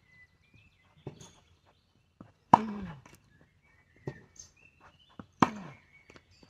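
A tennis racket strikes balls with sharp, hollow pops.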